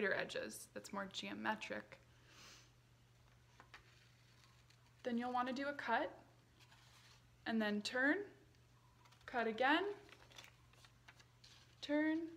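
A young woman speaks calmly and clearly, close by, in short phrases with pauses.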